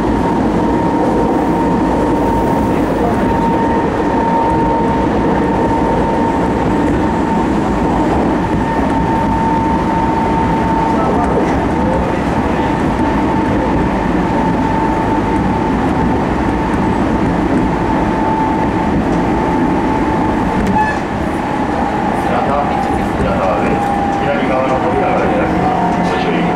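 A train's motor whines with a steady high hum.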